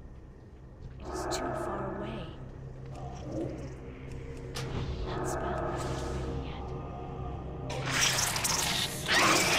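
Magic spells whoosh and crackle as a fight breaks out.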